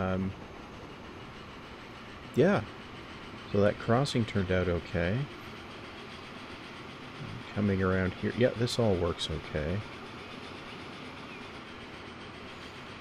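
A train rolls steadily along the rails.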